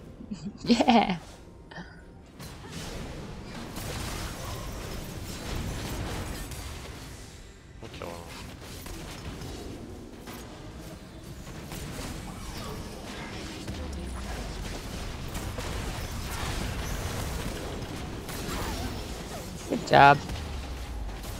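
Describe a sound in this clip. A young woman exclaims loudly into a close microphone.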